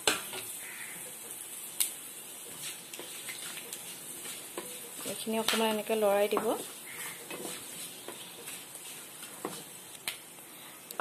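Oil sizzles and crackles softly in a pan.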